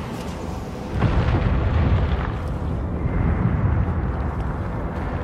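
A giant creature stomps heavily, with deep rumbling thuds.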